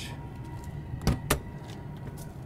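A compartment door clicks open with a knock.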